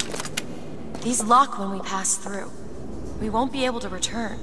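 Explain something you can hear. A young woman speaks softly up close.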